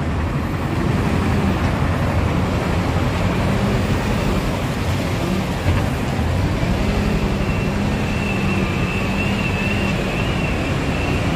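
A diesel wheel loader engine runs under load.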